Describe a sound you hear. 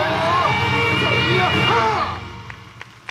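Festival music plays loudly through a loudspeaker outdoors.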